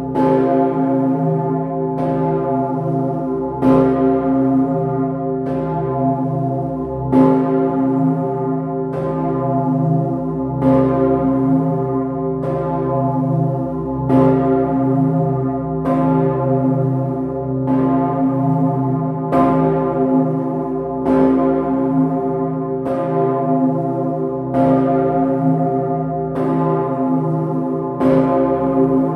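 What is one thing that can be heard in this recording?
A large bell swings and rings loudly at a steady pace, each stroke humming on as it fades.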